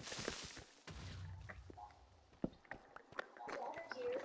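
A zombie groans.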